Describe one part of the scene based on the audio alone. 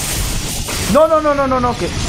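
Fiery explosions burst.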